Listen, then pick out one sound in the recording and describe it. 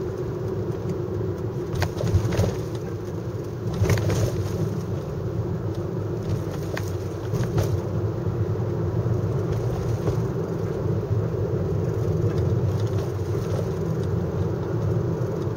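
A car engine drones, heard from inside the car while driving.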